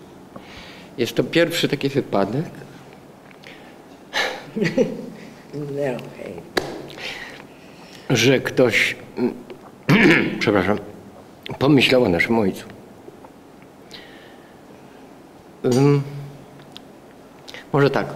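An elderly man speaks calmly into a nearby microphone, with pauses.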